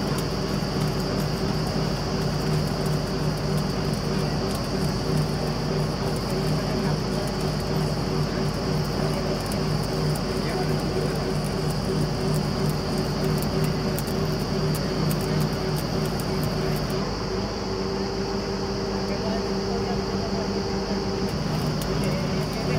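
Compressed air hisses from a borehole.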